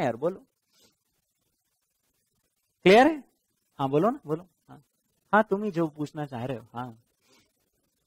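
A man speaks with animation through a clip-on microphone, in short bursts.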